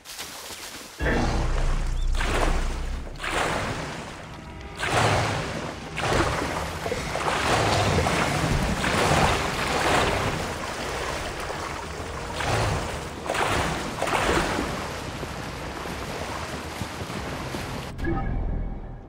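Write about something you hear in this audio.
Water splashes and rushes around a moving boat.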